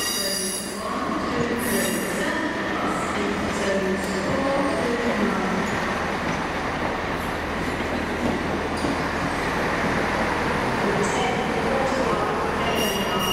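A train rolls slowly past with a low rumble.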